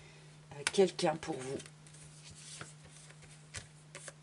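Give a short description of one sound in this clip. Playing cards riffle and slide softly against each other.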